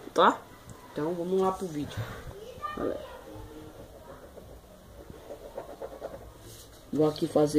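A boy speaks close to the microphone.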